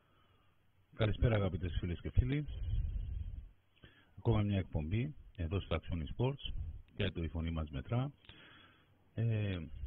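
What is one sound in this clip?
A man speaks calmly into a microphone over an online call.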